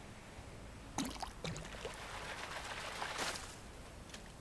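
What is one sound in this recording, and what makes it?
Water splashes briefly.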